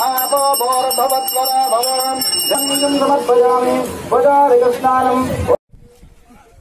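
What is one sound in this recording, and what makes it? A man chants in a steady, melodic voice.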